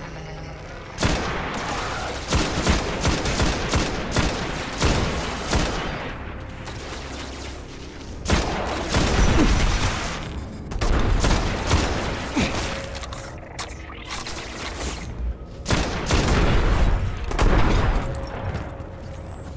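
Rapid gunfire cracks in loud bursts.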